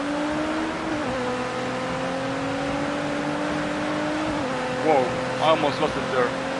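A car engine drones steadily at high revs, dipping briefly in pitch as the gears shift.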